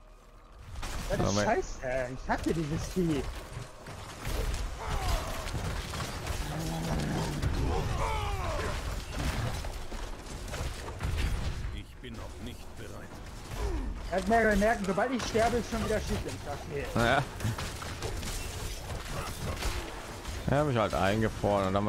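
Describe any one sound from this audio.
Weapons clash and magic blasts burst in a fierce battle.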